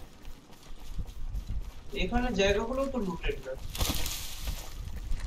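Footsteps thud and rustle through tall grass.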